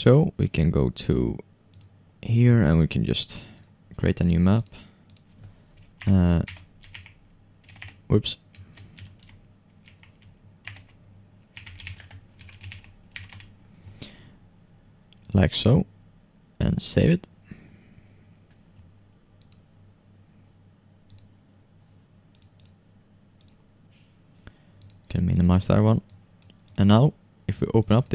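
A computer mouse clicks several times.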